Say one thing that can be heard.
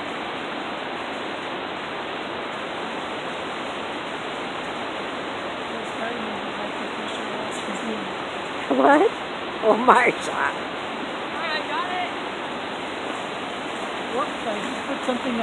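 A river rushes steadily over rocks nearby.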